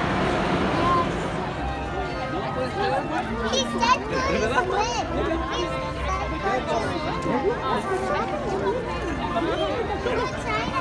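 A crowd chatters outdoors, with many voices overlapping.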